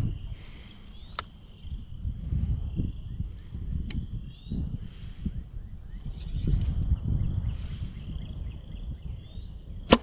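Wind gusts and buffets against the microphone outdoors.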